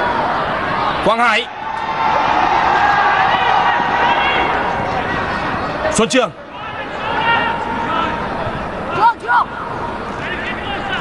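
A large crowd cheers and chants steadily in an open stadium.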